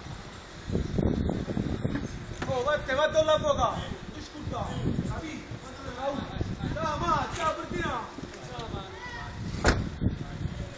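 A man talks loudly and agitatedly nearby.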